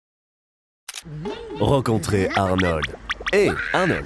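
An elderly woman laughs mockingly.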